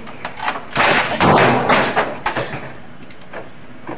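A man kicks a computer tower over.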